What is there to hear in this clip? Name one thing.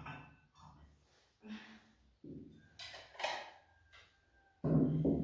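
Plates clatter as a young woman sets them on a table.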